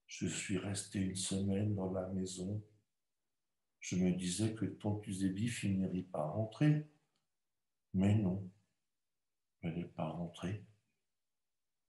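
A middle-aged man speaks calmly over an online call, pausing between phrases.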